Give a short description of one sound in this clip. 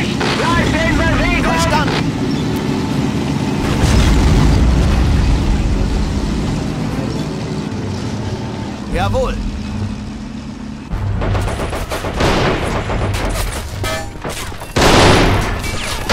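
Tank engines rumble and clatter steadily.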